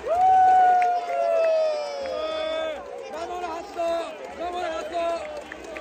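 A young man shouts and chants excitedly close to the microphone.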